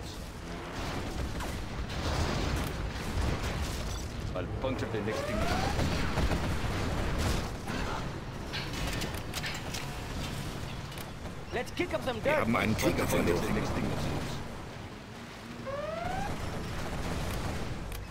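Distant explosions boom and rumble in a battle.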